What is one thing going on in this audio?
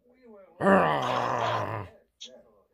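A dog barks loudly close by.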